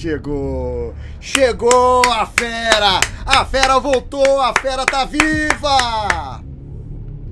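A middle-aged man laughs heartily.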